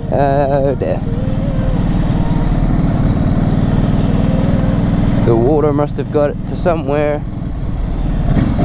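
A motorcycle engine rumbles up close as the bike rides along.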